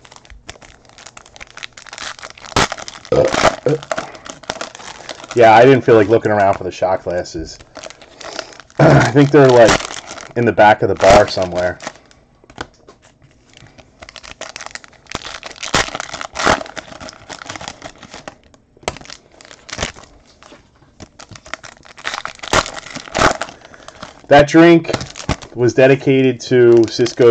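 Foil card wrappers crinkle and rustle.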